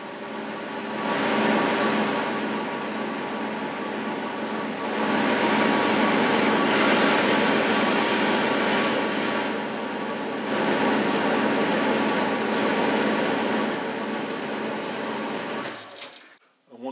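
A cutting tool scrapes and hisses against spinning metal.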